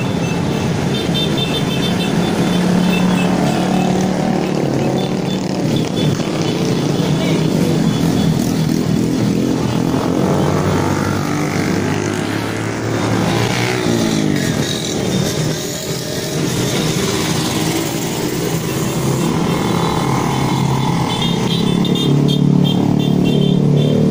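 Motorbike engines rev up and down as riders ride by.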